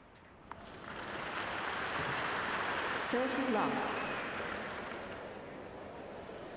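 A crowd cheers and applauds loudly, then quiets down.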